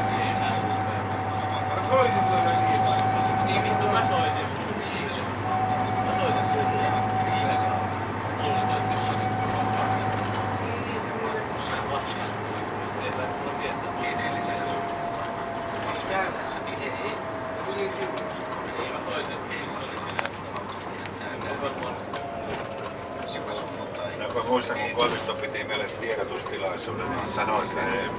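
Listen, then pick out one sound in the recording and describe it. A bus engine hums steadily from inside the bus.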